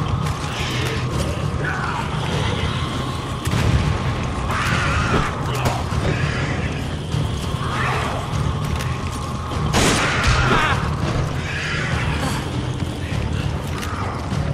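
A monster growls and snarls close by.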